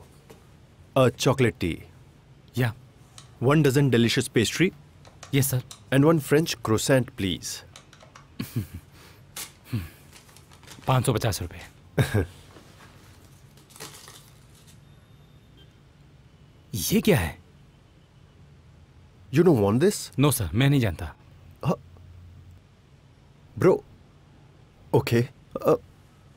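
A second man speaks calmly, close by.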